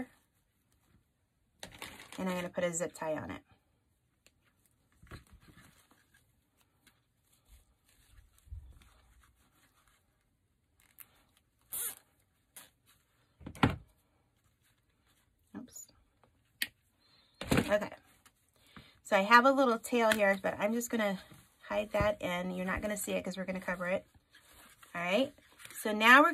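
Stiff ribbon rustles and crinkles as it is folded and pinched.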